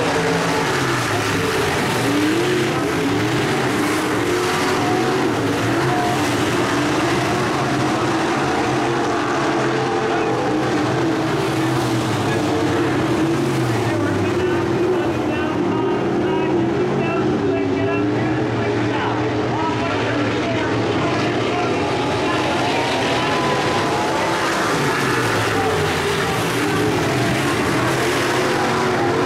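Race car engines roar loudly as the cars speed around a dirt track.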